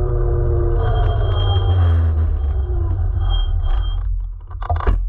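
An electric scooter rolls fast over asphalt.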